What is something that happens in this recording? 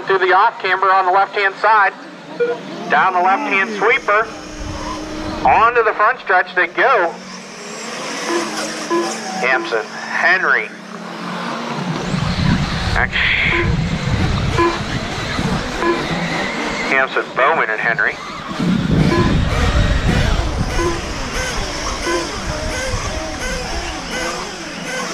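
Small electric model cars whine and rev as they race.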